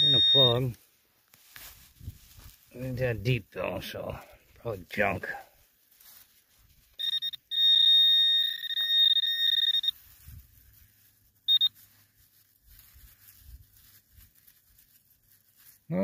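Fingers brush and crumble loose soil.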